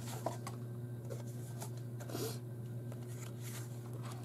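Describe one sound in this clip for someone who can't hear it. Stiff cards rustle and slide as they are shuffled by hand.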